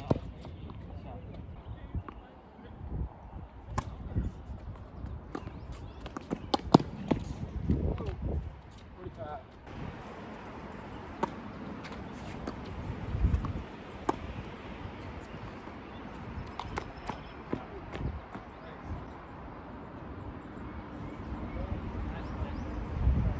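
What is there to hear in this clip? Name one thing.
Tennis shoes scuff and squeak on a hard court.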